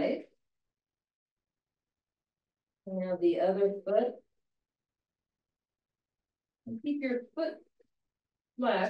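An older woman speaks calmly through a microphone, in short phrases with pauses.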